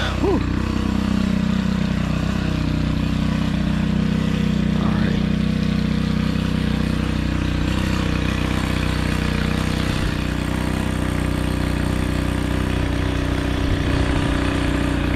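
A petrol string trimmer engine drones steadily up close.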